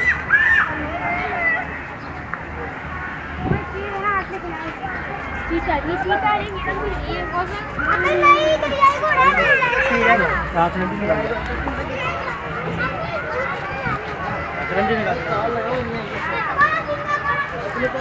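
A crowd of men, women and children chatters nearby outdoors.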